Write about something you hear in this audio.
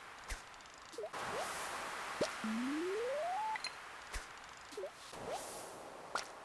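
A lure plops into water.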